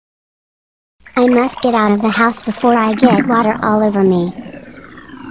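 A young boy speaks in a flat, computer-like voice.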